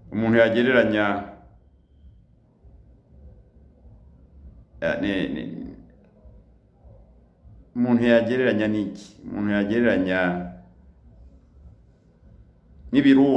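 A middle-aged man speaks slowly and earnestly close to the microphone, with long pauses.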